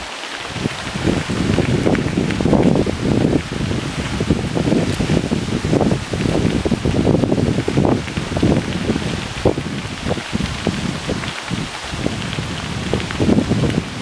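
A river rushes nearby.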